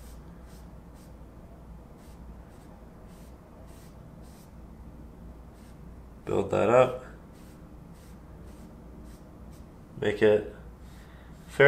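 A brush dabs and scrapes softly on canvas.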